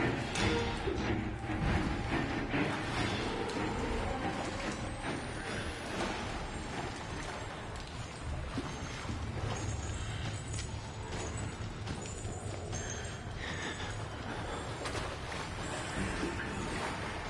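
Footsteps crunch over debris on a hard floor.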